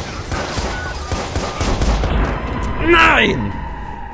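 A car bursts into flames with a deep roar.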